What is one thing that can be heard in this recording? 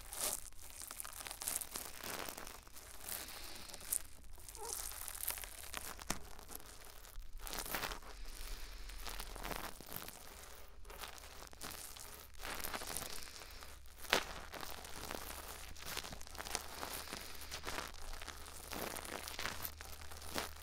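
Something scratches and taps softly right against a microphone, very close.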